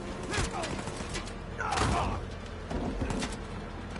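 A man grunts while fighting.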